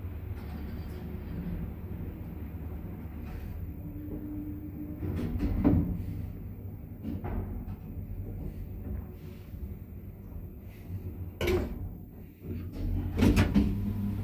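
An elevator car hums and rumbles low as it descends.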